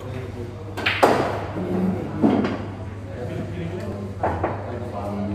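Pool balls click sharply as a cue strikes them.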